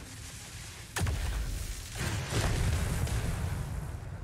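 Electric magic crackles and bursts loudly.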